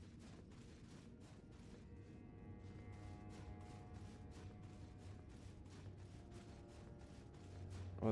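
Footsteps knock steadily on the rungs of a wooden ladder.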